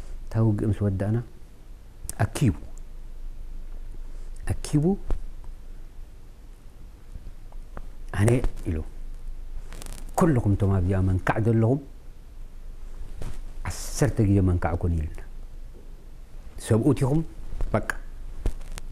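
An elderly man speaks calmly and with pauses, close to a microphone.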